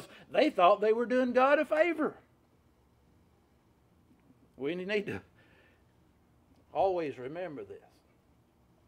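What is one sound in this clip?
A middle-aged man speaks with animation, pausing between phrases.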